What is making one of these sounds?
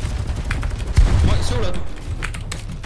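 A young man talks into a microphone with animation.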